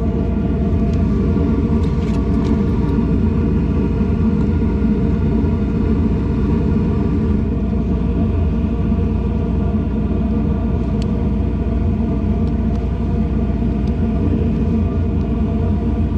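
An air conditioning unit hums steadily close by.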